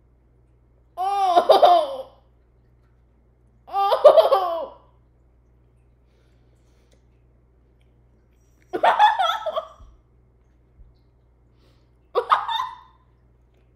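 A young woman laughs loudly.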